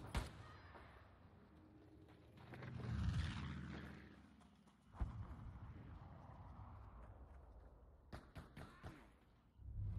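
Guns fire in sharp, loud shots.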